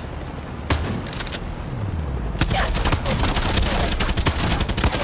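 Helicopter rotors thump overhead.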